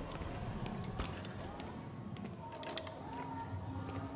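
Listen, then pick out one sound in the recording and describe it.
Wheelchair wheels roll slowly over a hard floor.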